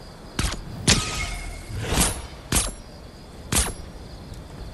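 Gunshots fire in sharp, loud bursts.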